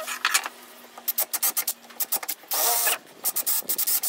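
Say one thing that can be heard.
A drill bores into wood.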